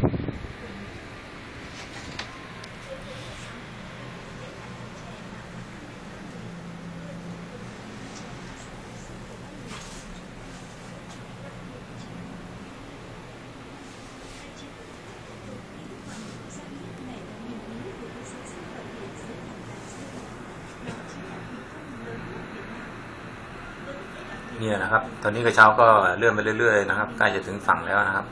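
A cable car hums softly as it glides along its cable.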